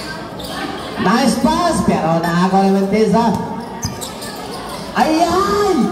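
Spectators shout and cheer loudly nearby.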